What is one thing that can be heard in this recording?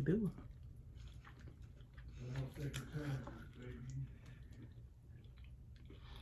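A woman chews food close by.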